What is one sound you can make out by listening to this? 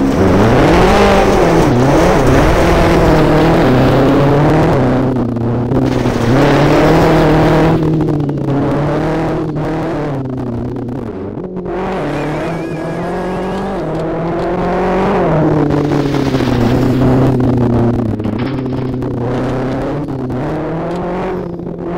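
A rally car engine roars and revs hard, rising and falling with gear changes.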